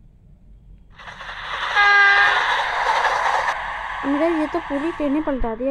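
A train crashes into a car with a loud metallic crunch.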